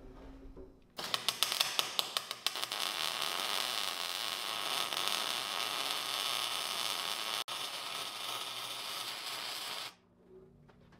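An electric welder crackles and buzzes steadily.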